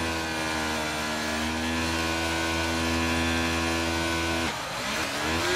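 Racing car engines drone loudly at a steady pitch.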